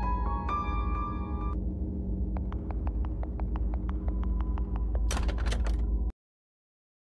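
Eerie game music plays loudly, then cuts off abruptly.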